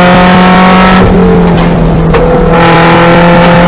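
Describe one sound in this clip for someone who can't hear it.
A race car engine note drops briefly, then climbs again.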